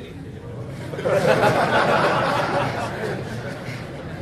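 A group of people laughs.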